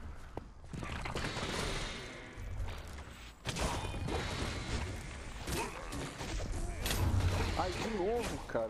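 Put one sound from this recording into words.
Swords clash and strike in a fast video game fight.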